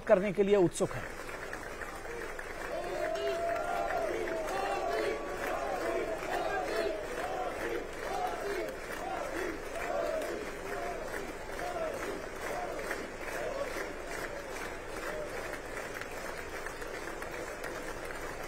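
Many men and women chatter and greet each other.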